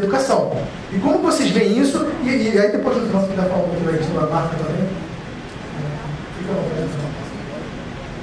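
A man speaks with animation into a microphone, heard through a loudspeaker in a large room.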